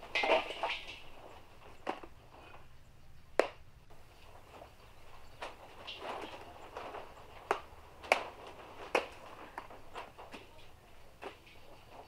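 Dried dung cakes knock and scrape.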